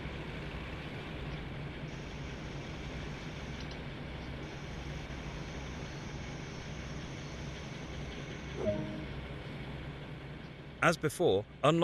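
A diesel train engine rumbles steadily as the train slows to a stop.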